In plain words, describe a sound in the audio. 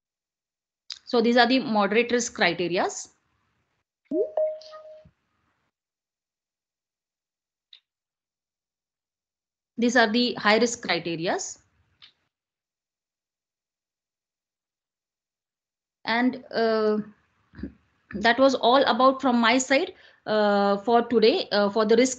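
A young woman speaks calmly in bursts over an online call.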